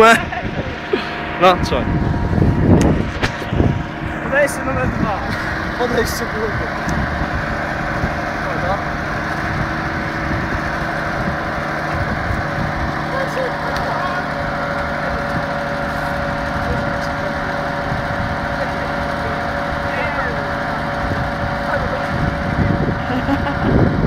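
An excavator engine idles steadily nearby.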